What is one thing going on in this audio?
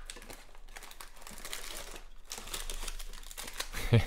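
A cardboard box lid is pulled open.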